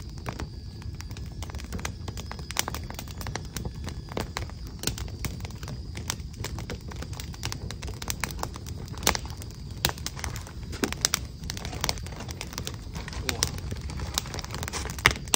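Light taps and clicks of writing or handling small things sound close by.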